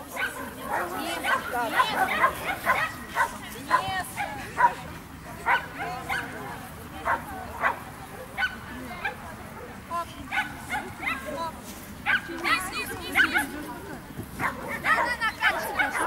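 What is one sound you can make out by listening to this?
A young woman calls out short commands to a dog outdoors.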